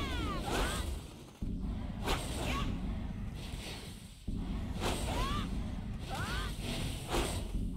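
A magic spell whooshes and swirls again and again.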